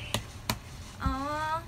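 A small plastic case clicks as it is handled.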